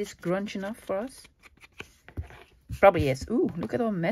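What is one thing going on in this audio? A foam ink tool taps softly onto an ink pad.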